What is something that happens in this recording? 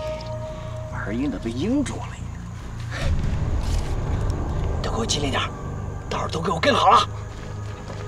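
A man speaks urgently in a low, hushed voice.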